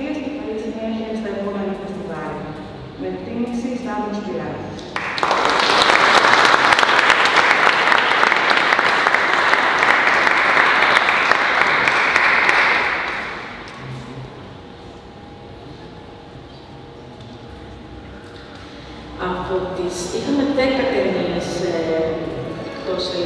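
A woman speaks through a microphone over loudspeakers in a large echoing hall.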